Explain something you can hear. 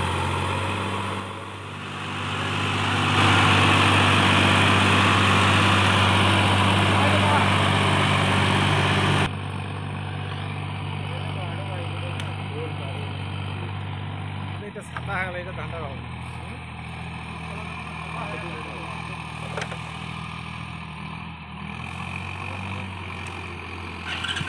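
A tractor engine chugs steadily as it pulls a loaded trailer.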